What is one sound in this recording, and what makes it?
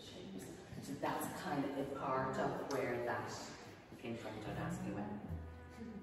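A woman speaks with animation in a room with a slight echo.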